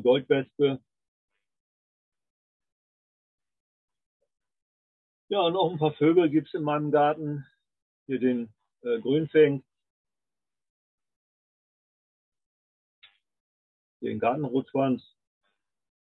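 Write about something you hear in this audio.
An elderly man talks calmly over an online call, in short bursts with pauses.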